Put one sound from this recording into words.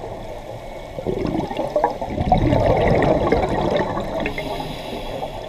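Air bubbles from a diver's breathing gurgle and rumble underwater.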